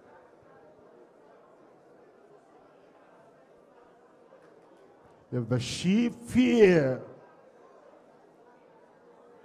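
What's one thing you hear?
A large crowd sings softly together at a distance.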